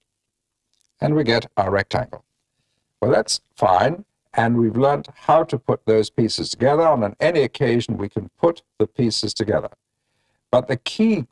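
A middle-aged man speaks calmly into a close microphone.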